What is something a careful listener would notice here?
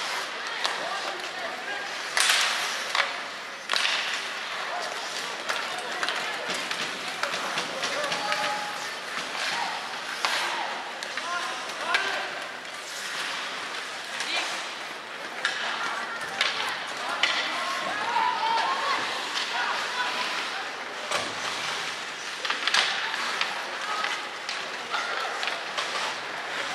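Skates scrape and hiss across ice in a large echoing arena.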